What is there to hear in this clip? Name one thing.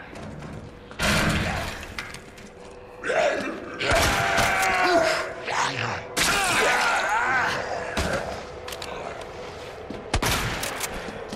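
Pistol shots ring out sharply in a hard echoing corridor.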